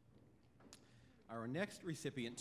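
A man begins speaking into a microphone.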